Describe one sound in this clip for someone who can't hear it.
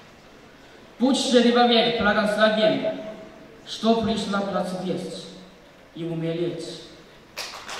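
A young man speaks with feeling through a microphone in a large hall.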